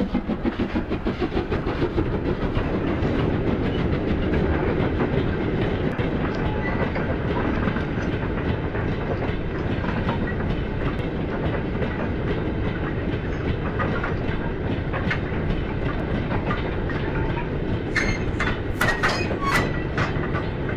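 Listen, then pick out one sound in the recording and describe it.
Model wagons rumble and clatter steadily over the rails.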